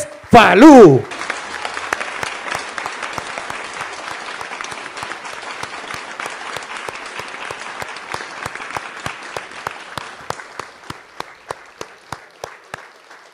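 A crowd applauds and cheers steadily, then the clapping thins out.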